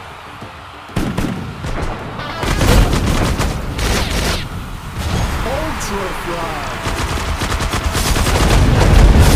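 Game gunfire and explosions burst rapidly and loudly.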